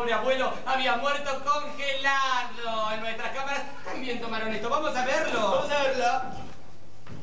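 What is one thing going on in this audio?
Two young men sing together loudly and with animation.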